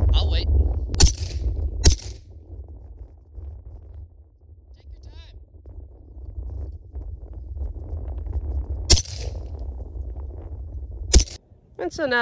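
A rifle fires single sharp shots outdoors.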